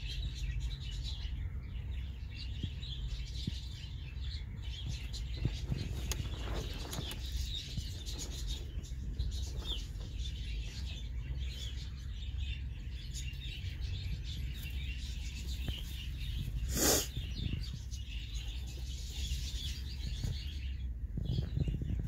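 Dry straw rustles and crackles as small animals shuffle about.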